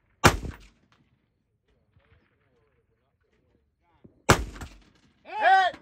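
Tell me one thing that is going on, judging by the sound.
A rifle fires loudly close by, with a short echo.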